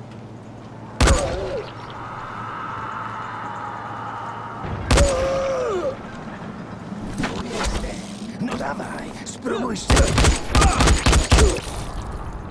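A rifle fires single loud shots and then a rapid burst.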